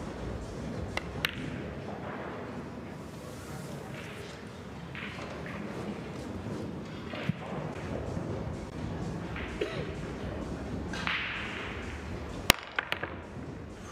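Billiard balls knock together with sharp clicks.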